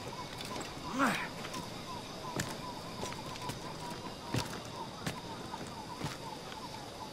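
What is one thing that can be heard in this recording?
Hands grip and scrape on tree bark while climbing.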